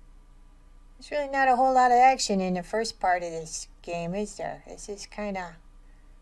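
A person speaks in a high, playful character voice close to a microphone.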